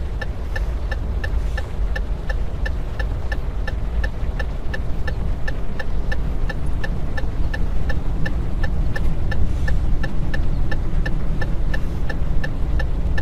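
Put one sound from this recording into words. A truck engine rumbles low and steady.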